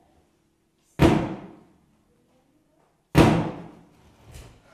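A man strikes the stage floor with two loud, echoing thuds.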